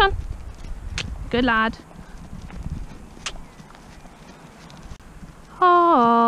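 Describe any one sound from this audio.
A pony trots softly over grass.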